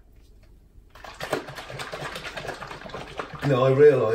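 A shaker bottle rattles as it is shaken hard.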